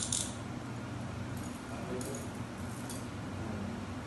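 Metal handcuffs clink and rattle.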